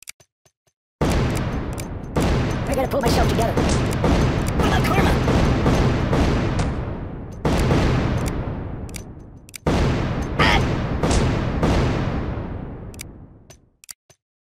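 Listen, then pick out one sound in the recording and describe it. Grenades explode with loud booming blasts, one after another.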